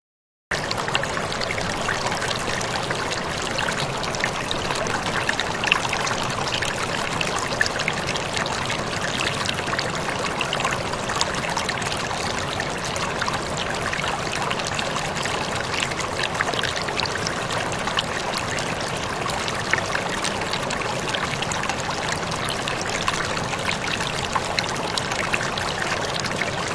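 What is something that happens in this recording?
A stream rushes and splashes over rocks close by.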